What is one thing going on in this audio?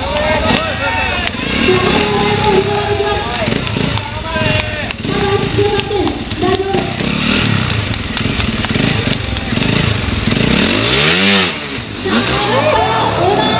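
A motorcycle engine idles and revs sharply.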